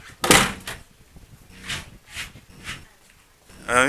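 A curtain rustles close by as it is brushed aside.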